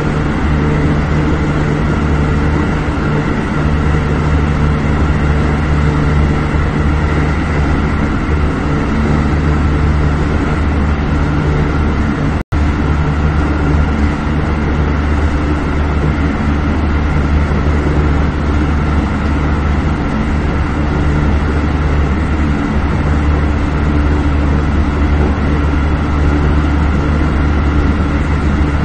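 A train rumbles steadily along the tracks from inside the cab.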